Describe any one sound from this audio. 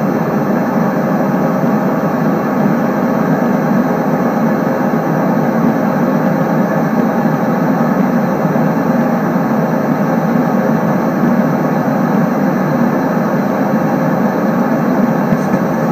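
A train engine hums steadily as the train rolls along the tracks.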